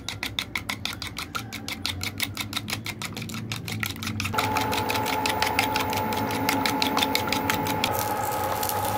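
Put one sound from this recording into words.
A fork whisks eggs quickly, clinking against a plastic bowl.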